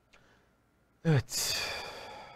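A man speaks into a microphone close up.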